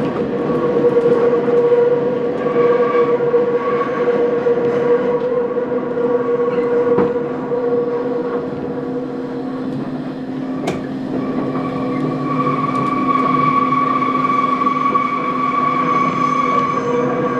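A train rumbles and rattles steadily along the tracks.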